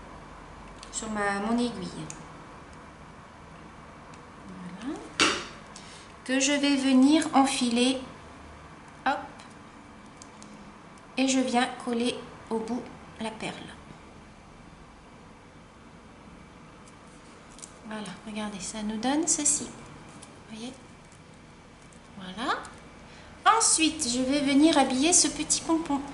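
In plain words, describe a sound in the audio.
A woman speaks calmly, close by, in short phrases with pauses.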